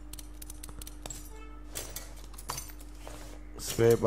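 A metal brake part clicks and clanks as it is taken off.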